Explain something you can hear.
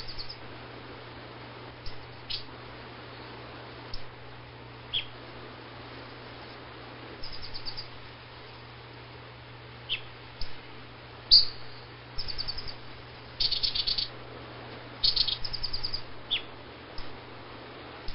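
A small bird chirps and trills in short bursts.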